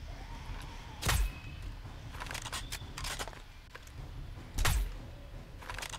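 A rifle fires two loud shots.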